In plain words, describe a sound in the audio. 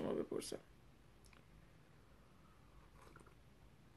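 A woman sips a hot drink with a soft slurp.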